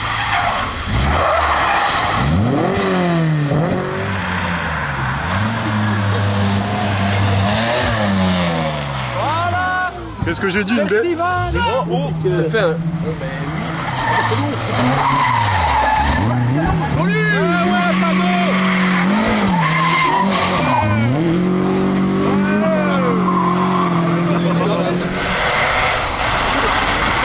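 Rally car engines roar and rev hard as cars race past close by.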